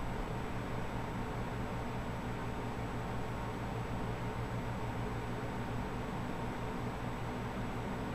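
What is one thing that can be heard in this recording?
A computer fan hums steadily close by.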